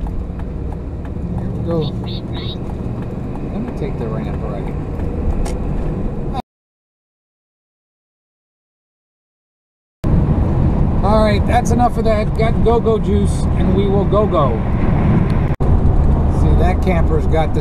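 Car tyres hum steadily on a highway.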